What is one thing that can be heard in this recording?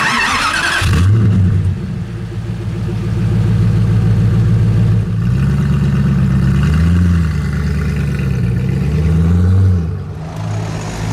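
A sports car engine idles with a deep rumble and revs in bursts.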